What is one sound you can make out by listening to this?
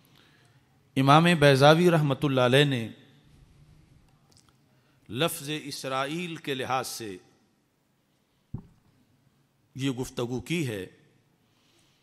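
A middle-aged man speaks emphatically into a microphone, in bursts with pauses.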